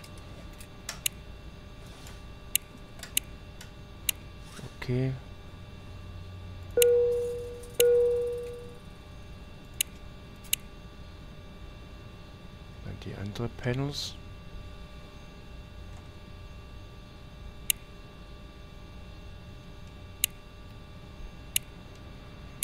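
Switches click sharply.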